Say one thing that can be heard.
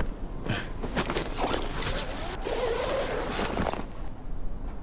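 Wind rushes loudly past, then stops.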